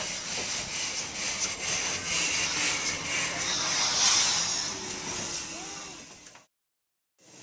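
A steam locomotive hisses loudly as it pulls slowly past.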